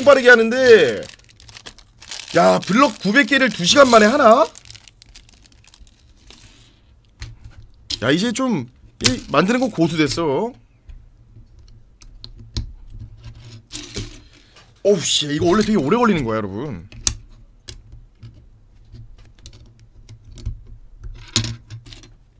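Plastic toy bricks click and clatter as they are snapped together.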